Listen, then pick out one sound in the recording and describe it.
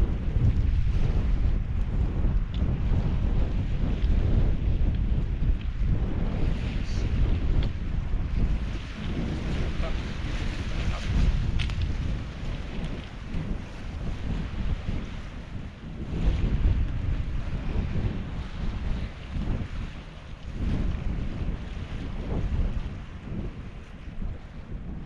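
Small waves lap gently on a pebble shore.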